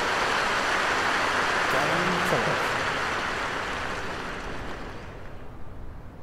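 A crowd applauds loudly, then the applause slowly fades away.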